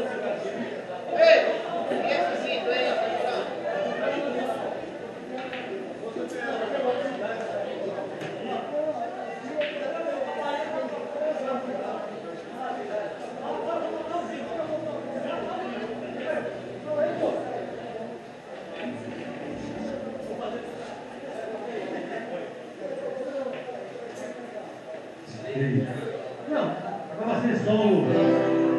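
Several men talk casually nearby.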